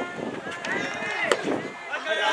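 A racket strikes a soft tennis ball with sharp pops.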